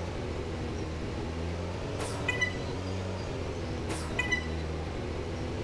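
A small engine hums steadily.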